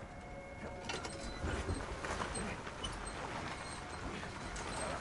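A heavy cart rolls and rumbles across the ground.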